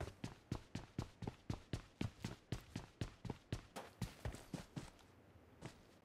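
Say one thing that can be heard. Quick footsteps of a running game character thud on the ground.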